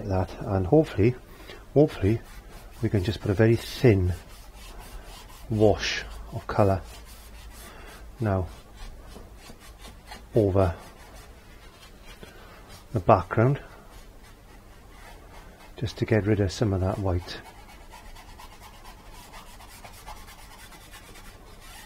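A brush swishes softly across canvas.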